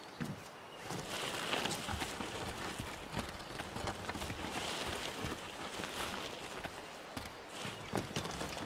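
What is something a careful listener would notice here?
A wooden pallet scrapes as it is dragged across the ground.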